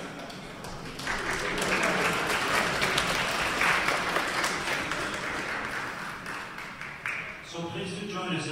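A group of people laughs.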